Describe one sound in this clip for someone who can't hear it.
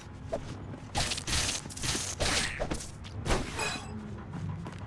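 A blade swooshes through the air in quick swings.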